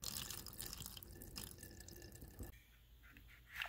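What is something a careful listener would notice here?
Water trickles from a hose and splashes into shallow water.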